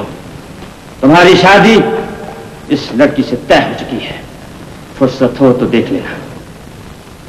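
A man speaks loudly and forcefully.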